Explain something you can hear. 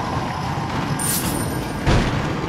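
Coins jingle briefly.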